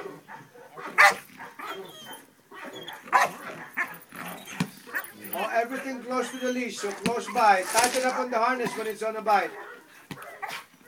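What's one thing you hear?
A dog barks sharply.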